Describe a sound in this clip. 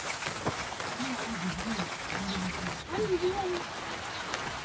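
A water buffalo lows nearby.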